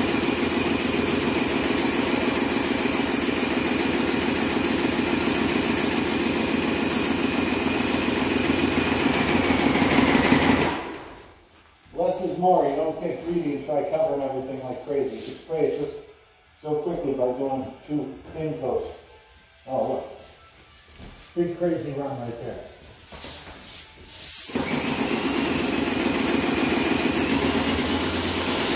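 A paint sprayer hisses steadily and loudly.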